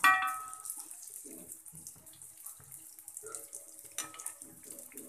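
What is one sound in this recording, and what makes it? A metal ladle clinks against a pan.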